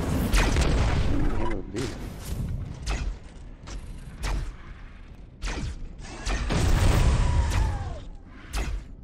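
Flames roar from a flamethrower.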